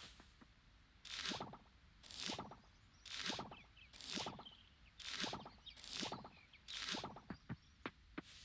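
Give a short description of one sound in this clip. A game plays a soft rustling pop about once a second as crops are harvested.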